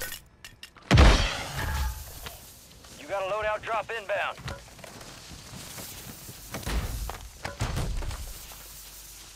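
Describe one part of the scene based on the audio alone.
A smoke flare hisses steadily.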